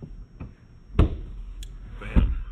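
A seat back folds down and thumps into place.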